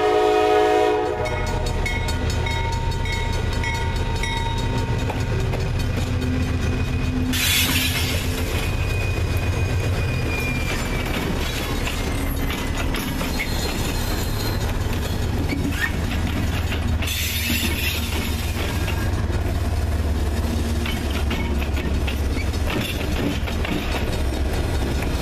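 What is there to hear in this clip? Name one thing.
Diesel locomotives rumble heavily as they pass close by.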